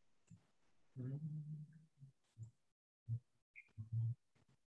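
A man speaks calmly in short phrases, heard through an online call.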